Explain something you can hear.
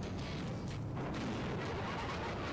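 A game explosion booms.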